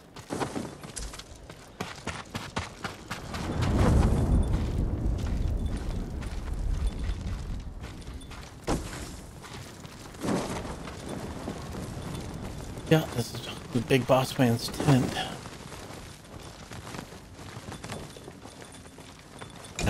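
Footsteps crunch over snow and hard ground.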